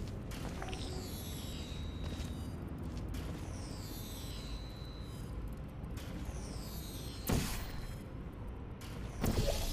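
A portal gun fires with a sharp zap.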